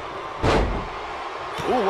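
A body slams onto a wrestling mat with a heavy thud.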